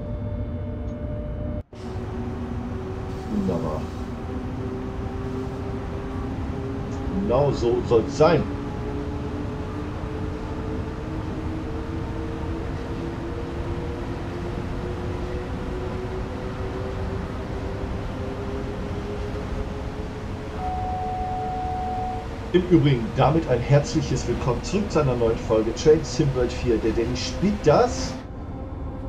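An electric train's motor hums steadily and slowly rises in pitch as it speeds up.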